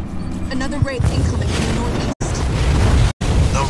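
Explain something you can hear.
Explosions and blasts boom in a battle.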